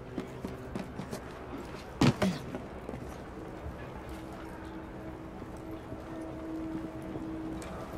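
Footsteps tread softly on hard ground.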